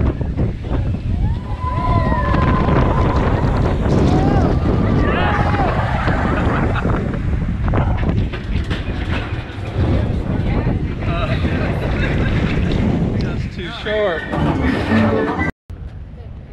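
People scream and cheer on a roller coaster.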